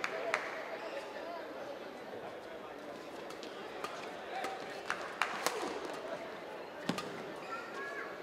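Sports shoes squeak on the court floor.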